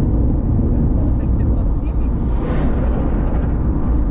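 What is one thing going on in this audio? An oncoming truck rushes past the car.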